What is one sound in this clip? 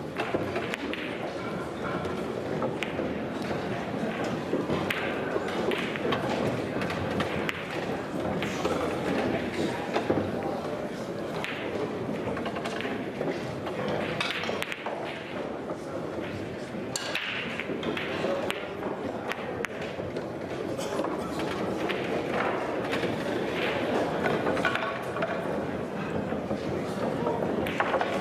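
Voices murmur throughout a large echoing hall.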